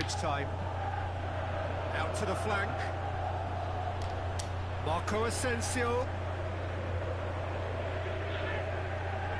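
A large stadium crowd roars steadily.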